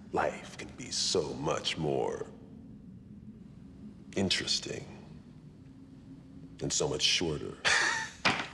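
A man speaks in a low, menacing voice, close by.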